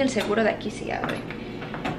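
A doorknob rattles and turns.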